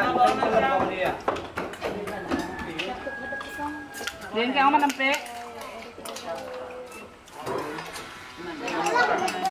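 Spoons and bowls clink as people eat.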